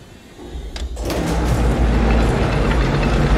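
A shredding machine roars and grinds loudly.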